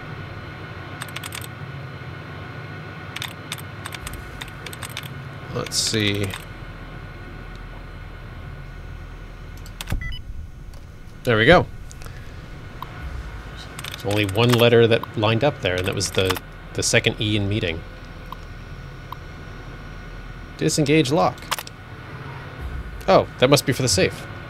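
Keys on an old computer terminal click in short bursts.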